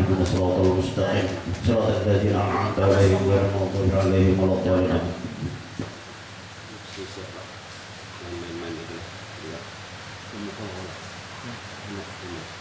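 An elderly man speaks with animation into a microphone, heard through a loudspeaker.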